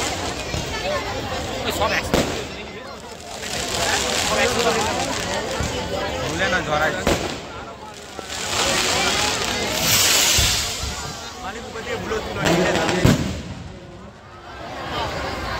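Fireworks bang and crackle loudly, close by.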